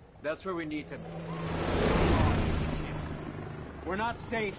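A helicopter roars overhead with thumping rotor blades.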